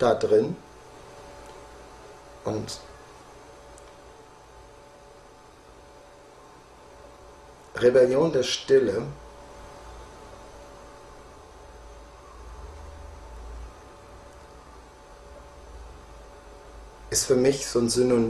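A middle-aged man speaks calmly, close by, in short bursts with long pauses.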